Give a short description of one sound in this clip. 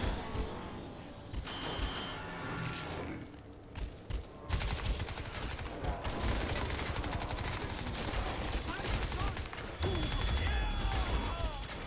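Ammunition clicks and rattles as it is picked up.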